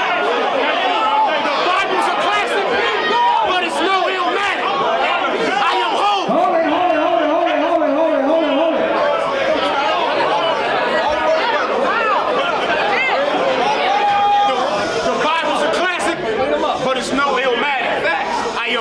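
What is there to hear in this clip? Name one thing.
A young man raps forcefully and with animation, close by.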